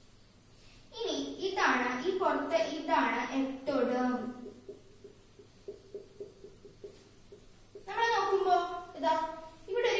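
A young woman speaks calmly, as if teaching, close by.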